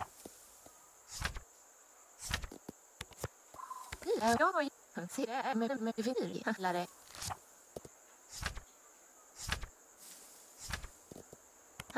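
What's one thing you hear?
Short soft clicks sound as album pages turn.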